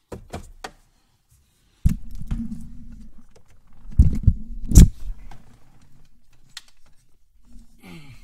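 Plastic parts rattle and knock close by.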